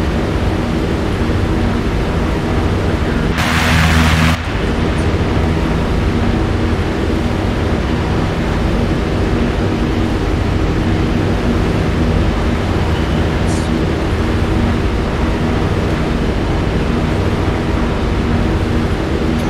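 A helicopter engine drones loudly and steadily from inside the cabin.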